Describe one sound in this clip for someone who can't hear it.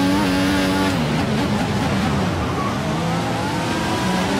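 A racing car engine drops in pitch as the car brakes hard for a corner.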